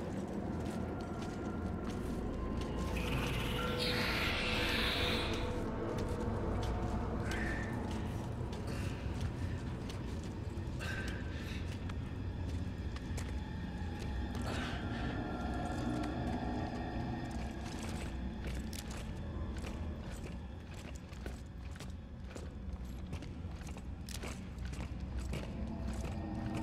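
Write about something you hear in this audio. Heavy footsteps clank on a hard floor.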